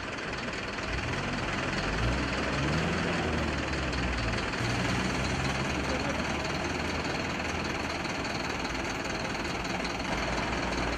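A truck engine rumbles low nearby.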